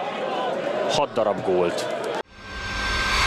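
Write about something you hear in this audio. A stadium crowd cheers and chants.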